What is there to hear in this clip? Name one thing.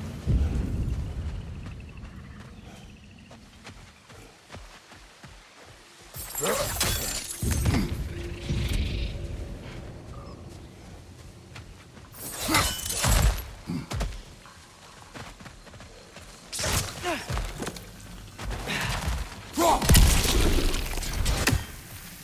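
Heavy footsteps thud on dirt and stone.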